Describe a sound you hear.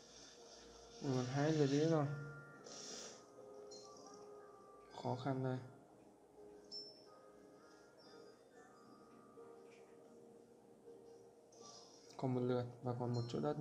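A young man speaks with animation close to a microphone.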